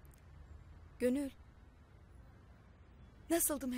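A woman speaks briefly and calmly nearby.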